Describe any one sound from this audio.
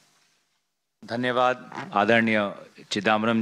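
A man speaks into a microphone with pauses.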